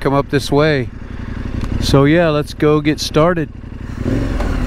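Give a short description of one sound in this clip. A motorcycle engine revs in short, quick bursts.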